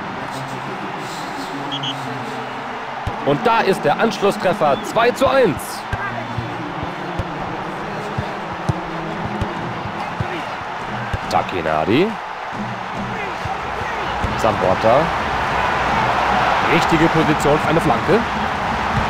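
A large stadium crowd roars steadily in the background.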